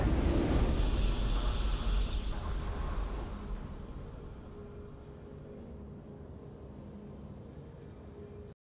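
A triumphant victory fanfare plays loudly and slowly fades away.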